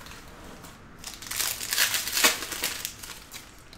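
A foil card pack crinkles and tears as it is opened.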